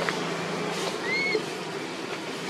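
A baby monkey squeaks faintly.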